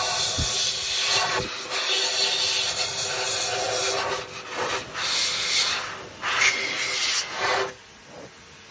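A vacuum cleaner whirs loudly with a steady hum, then cuts off.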